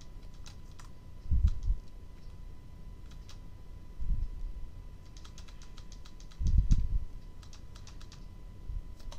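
Short electronic beeps sound as game menu options are selected.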